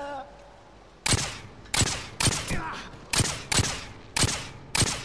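A pistol fires sharp single shots that ring out briefly.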